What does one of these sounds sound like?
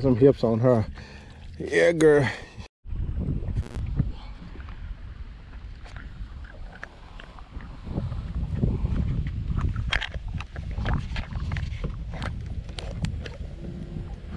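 A fishing reel clicks as it is handled.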